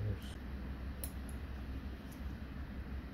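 Metal forceps tips click softly together.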